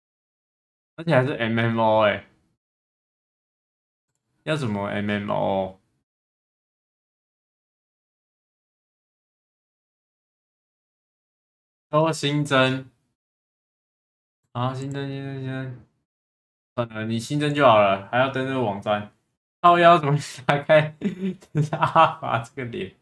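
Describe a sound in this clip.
A young man speaks with animation into a microphone, in short bursts.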